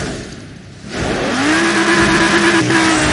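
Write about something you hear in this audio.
Tyres squeal as a car spins its wheels at the start.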